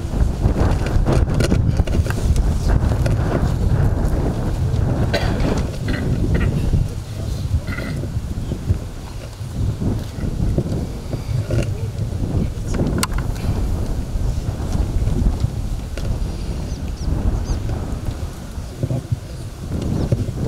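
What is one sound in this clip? A girl speaks into a microphone, reciting calmly outdoors.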